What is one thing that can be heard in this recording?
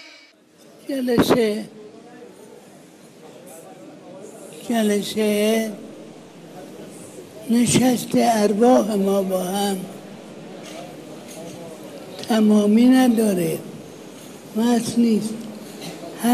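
An elderly man speaks slowly and calmly, close by.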